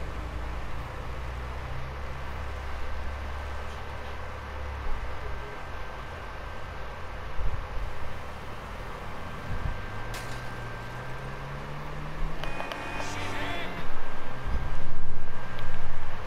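A car engine hums as a car drives along a road.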